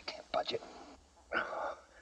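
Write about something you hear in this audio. Stone scrapes and grits against stone.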